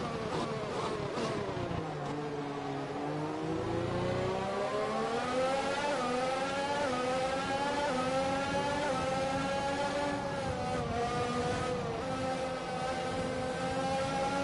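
A racing car engine whines loudly, dropping in pitch and then rising again as it speeds up through the gears.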